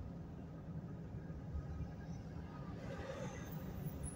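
Large trucks pass close by on the road.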